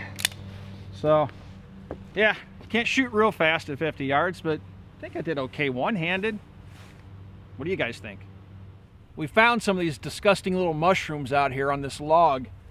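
A middle-aged man speaks calmly and closely into a microphone, outdoors.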